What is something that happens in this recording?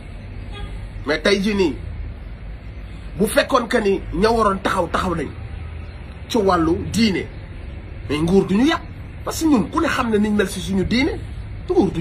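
A man speaks close up in short, emphatic bursts.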